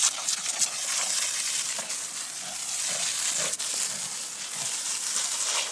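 Water sprays from a hose and patters onto grass.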